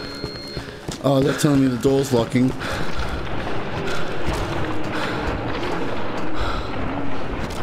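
A man talks close into a microphone, with animation.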